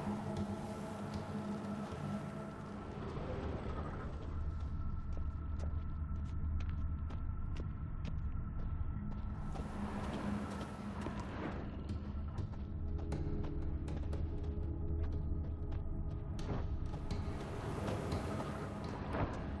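Footsteps crunch on stone and gravel at a walking pace.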